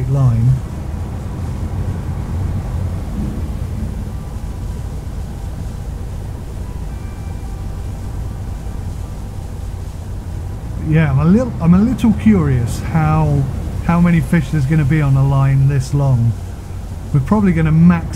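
Waves wash against the side of a boat.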